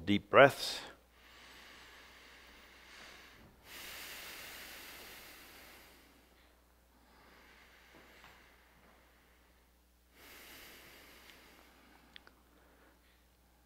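A man speaks faintly at a distance in a quiet room.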